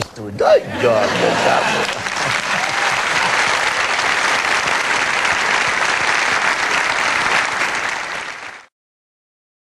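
A studio audience applauds and cheers.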